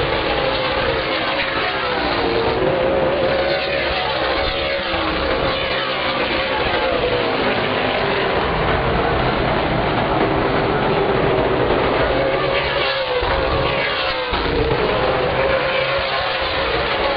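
Race car engines roar loudly as cars speed past.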